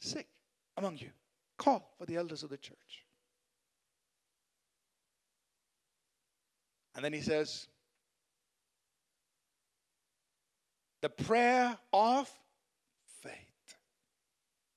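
A man speaks with emphasis through a microphone in a large hall, pausing between phrases.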